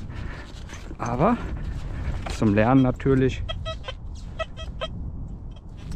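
A metal detector beeps and warbles in rising and wavering tones.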